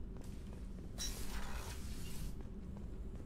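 A sliding door hisses open.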